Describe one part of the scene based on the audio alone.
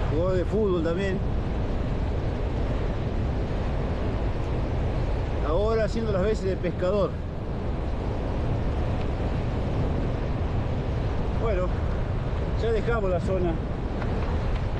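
Strong wind buffets and rumbles outdoors.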